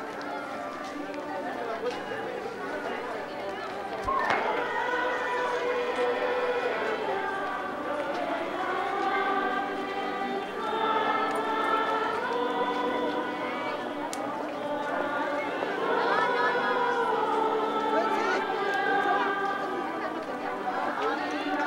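A crowd of people sings a slow chant in a large echoing hall.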